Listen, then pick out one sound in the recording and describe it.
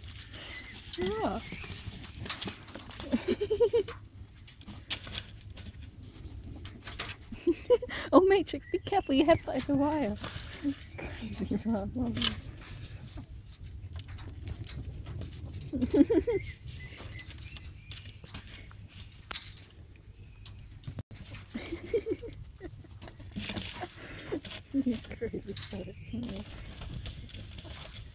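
Small animals scamper and rustle about on grass behind a wire mesh.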